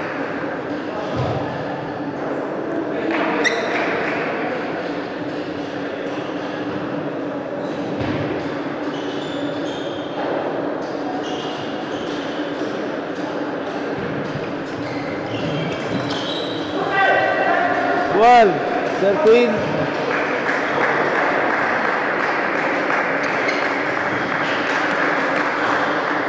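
A ball clicks back and forth on a table tennis table.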